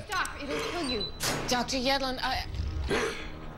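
A woman speaks quietly and coldly.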